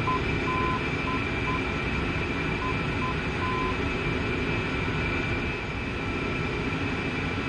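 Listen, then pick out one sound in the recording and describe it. A steady aircraft engine drones.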